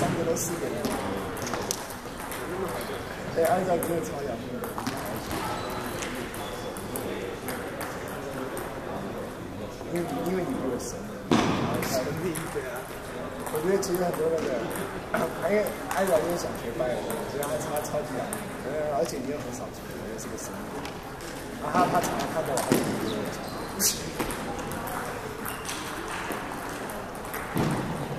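A crowd of young people chatters in a large echoing hall.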